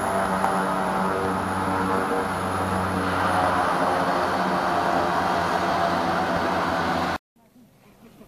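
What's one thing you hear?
A propeller plane's engines drone loudly nearby.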